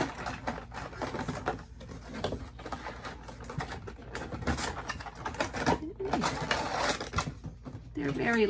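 Cardboard packaging rustles and crinkles in hands.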